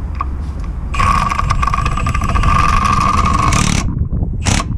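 A ratchet wrench clicks rapidly as a bolt is turned.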